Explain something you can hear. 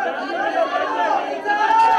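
A young man speaks into a microphone over a loudspeaker.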